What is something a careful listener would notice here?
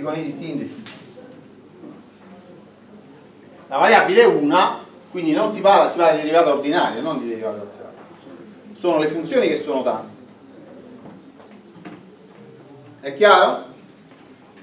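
A man lectures calmly in a room with a slight echo.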